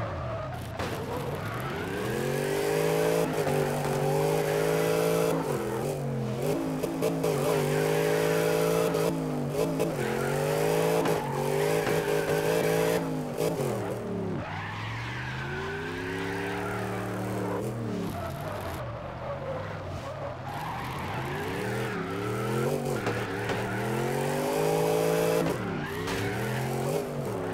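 A car engine revs high and drops as the car drifts.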